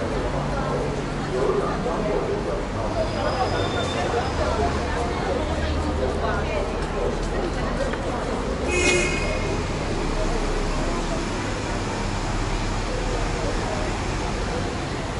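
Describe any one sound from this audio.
Distant traffic rumbles steadily below.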